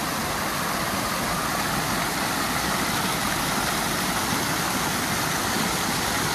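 Fountain jets splash steadily into a pool outdoors.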